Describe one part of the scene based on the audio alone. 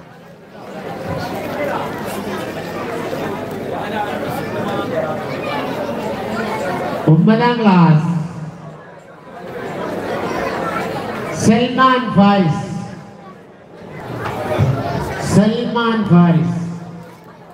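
A man speaks with animation into a microphone, heard through loudspeakers in a large echoing space.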